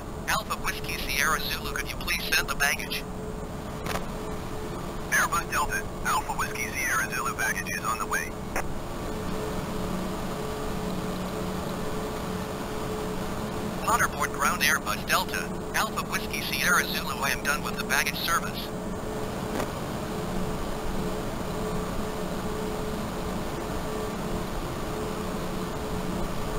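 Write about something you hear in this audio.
A jet engine hums steadily nearby.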